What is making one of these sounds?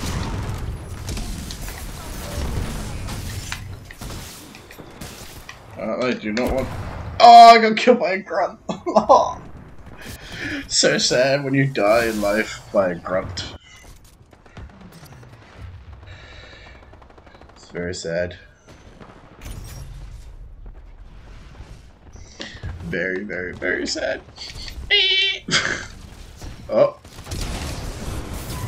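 An electric gun fires with a loud crackling zap.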